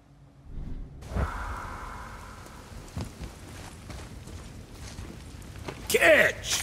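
Heavy footsteps thud on a wooden floor.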